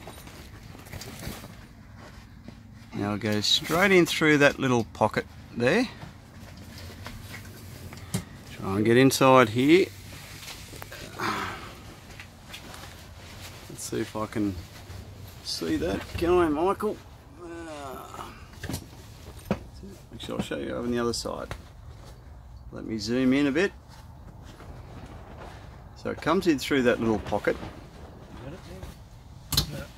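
Tent fabric rustles as it is handled.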